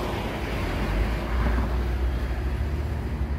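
A city bus drives past close by.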